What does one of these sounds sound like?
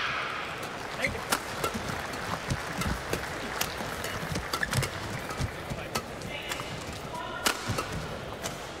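Rackets smack a shuttlecock back and forth in a quick rally.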